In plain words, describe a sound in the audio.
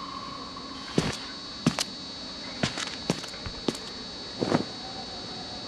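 Heavy footsteps thud on a hard floor close by.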